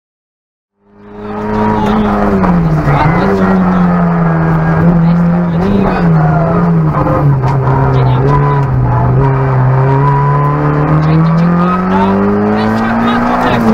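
A rally car engine roars loudly from inside the car, its pitch rising and falling.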